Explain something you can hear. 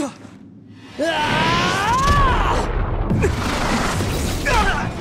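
Heavy blows crash together in a fight.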